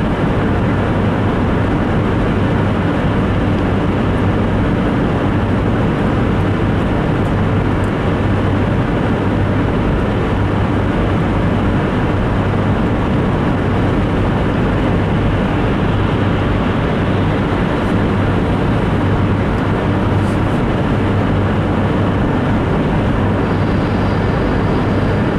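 A car engine hums steadily, heard from inside the cabin.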